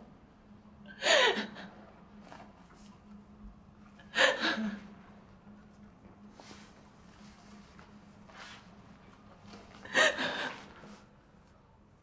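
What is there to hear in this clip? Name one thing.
A young woman sobs and wails.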